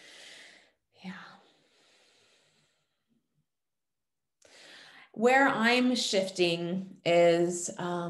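A woman speaks thoughtfully over an online call, with pauses.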